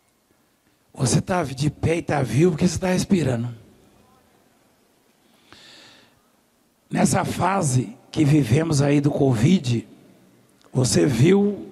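A man speaks forcefully into a microphone.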